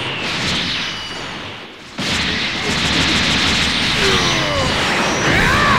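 Energy blasts crackle and roar.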